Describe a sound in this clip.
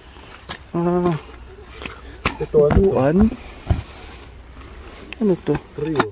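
Cloth rustles and crinkles as hands handle it.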